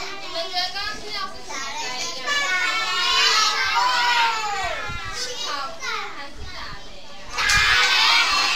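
Many young children chatter and call out together indoors.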